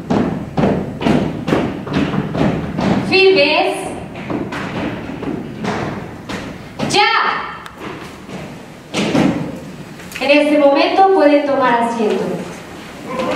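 A young woman speaks clearly through a microphone and loudspeakers, leading a group.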